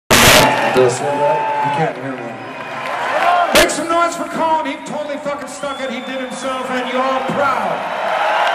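A man speaks loudly into a microphone, heard through loudspeakers.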